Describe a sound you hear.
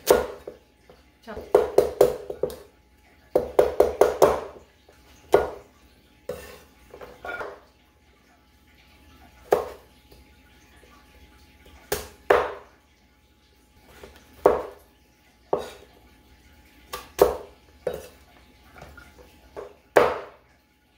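A chef's knife chops through pumpkin onto a wooden board.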